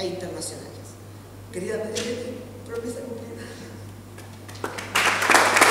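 An older woman speaks calmly into a microphone.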